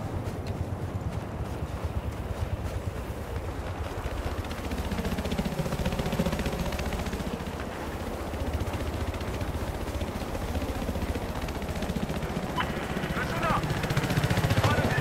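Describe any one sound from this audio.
A helicopter's rotor thumps steadily with a low engine drone.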